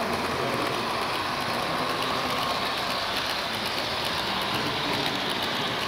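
A model train rumbles and clatters steadily along its track.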